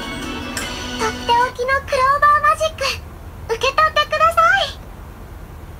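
Short bright tones play from a tablet's small speaker.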